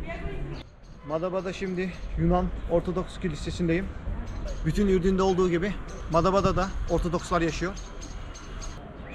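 A man speaks calmly close to the microphone.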